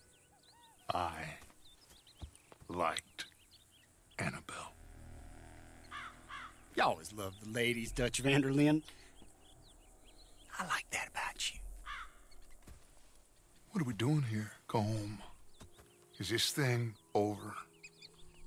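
A man speaks in a low, gravelly voice.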